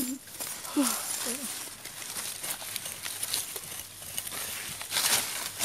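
A gloved hand scrapes and digs in dry soil and leaf litter.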